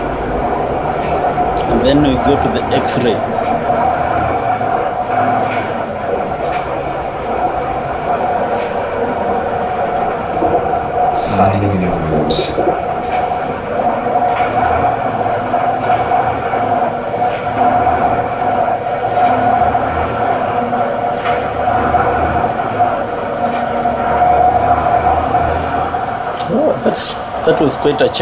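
A diesel truck engine hums from inside the cab while cruising.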